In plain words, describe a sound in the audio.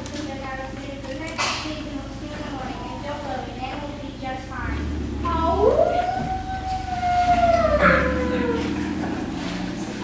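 A young girl speaks loudly from a stage in an echoing hall.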